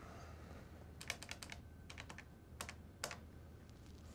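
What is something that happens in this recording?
Telephone keys click as a number is dialed.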